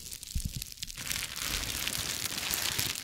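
Bubble wrap rustles and crackles close up.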